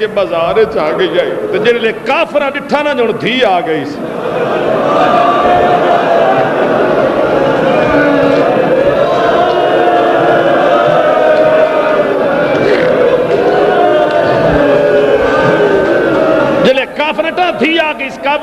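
A man speaks forcefully and with passion into a microphone, heard through loudspeakers.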